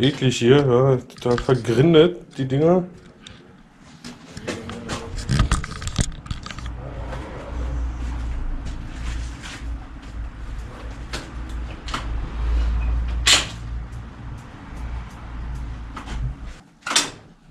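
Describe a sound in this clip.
Metal parts of a bicycle click and clatter as they are handled.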